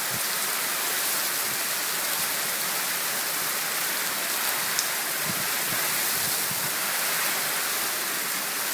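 Floodwater rushes along a street.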